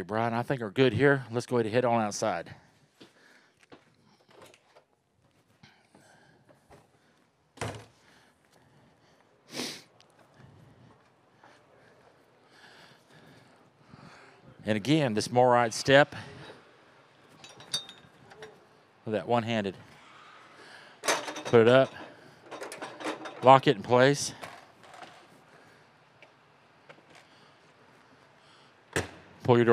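An older man speaks with animation into a close microphone.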